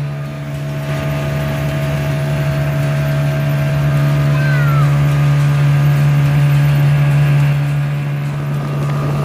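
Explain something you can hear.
Water splashes and rushes against the side of a boat.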